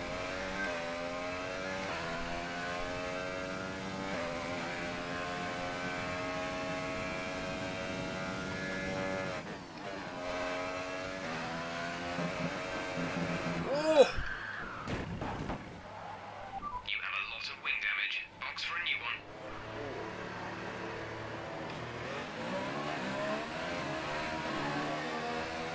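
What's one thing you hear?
A racing car's engine whines and revs up and down through gear changes.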